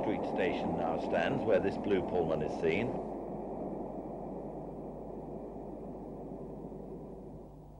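A train rolls across a bridge with a steady rumble.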